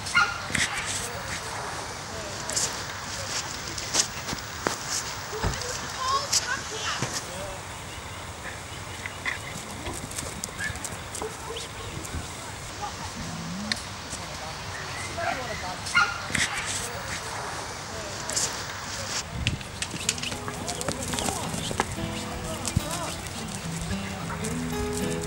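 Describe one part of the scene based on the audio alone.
Sheep hooves shuffle on dry dirt.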